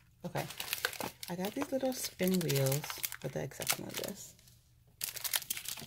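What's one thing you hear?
Fingernails click against cardboard boxes as they are handled.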